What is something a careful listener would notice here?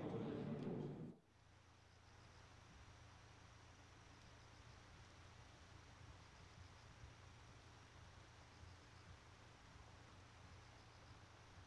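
A fountain sprays and splashes water steadily in the distance.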